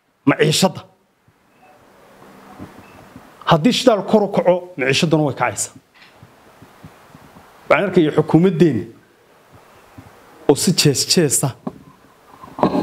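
A man speaks calmly into microphones, close by, with pauses between phrases.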